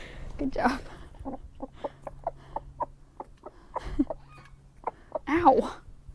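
A chicken pecks quickly at food from a hand.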